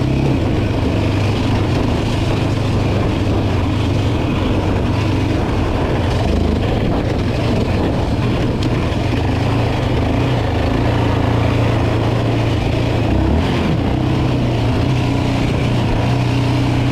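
Tyres crunch and rumble over a dirt track.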